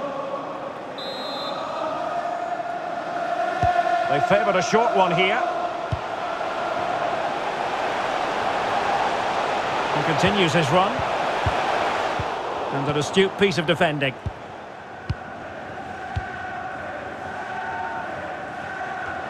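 A stadium crowd roars and chants.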